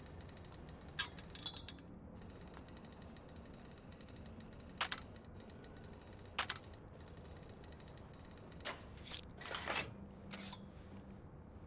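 Metal lock pins click sharply as a lock is picked.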